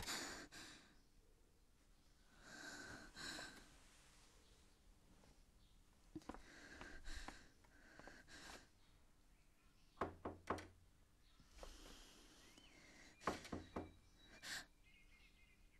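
A young woman speaks softly and anxiously, close by.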